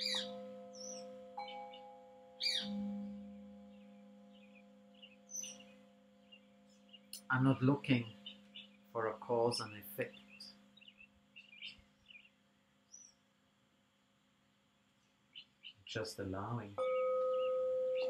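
A metal singing bowl is struck and rings with a long, slowly fading hum.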